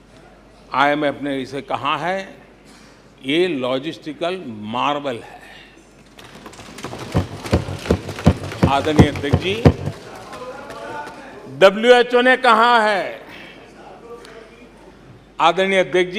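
An elderly man speaks calmly and firmly into a microphone in a large hall.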